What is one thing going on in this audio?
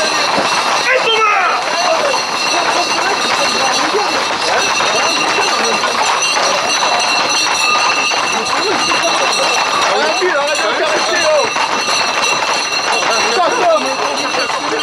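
A crowd of young men shouts and calls out outdoors.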